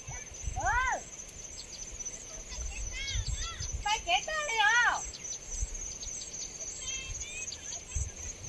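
Wind gusts across an open hillside.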